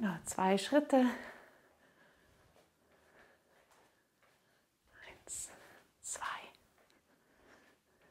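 Bare feet step and shuffle on a mat.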